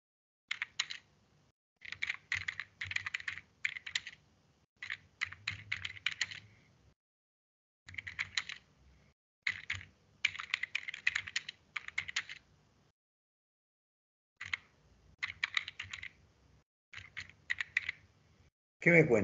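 Keys clatter in quick bursts as someone types on a keyboard.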